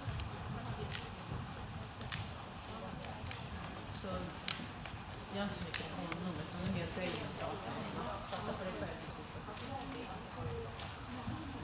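A horse's hooves thud softly on sand in a large indoor arena.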